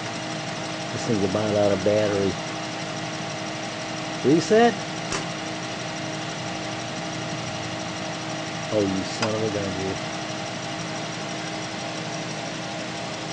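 A small machine motor hums steadily.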